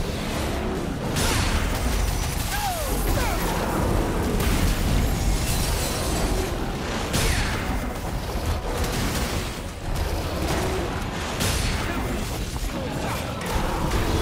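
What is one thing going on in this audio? A giant beast roars and stomps heavily.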